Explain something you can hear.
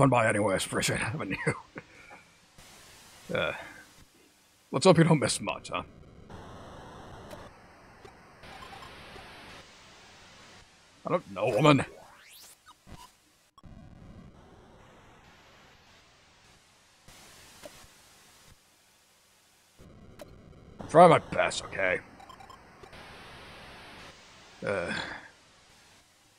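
A man talks into a microphone in short, animated bursts.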